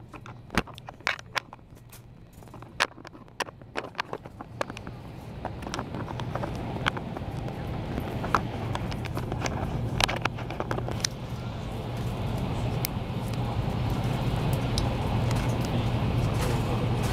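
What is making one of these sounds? A train rumbles steadily along the tracks, growing louder.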